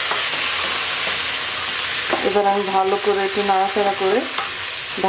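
A spatula stirs and scrapes against a pan.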